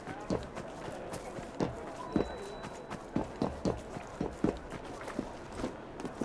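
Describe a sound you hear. Footsteps patter quickly over gravel and wooden sleepers.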